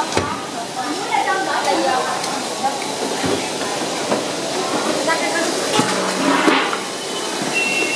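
Women talk nearby with animation.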